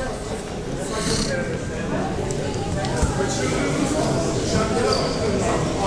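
A small crowd of people chatters far off in a large echoing hall.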